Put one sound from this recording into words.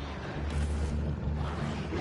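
Electricity crackles and buzzes loudly.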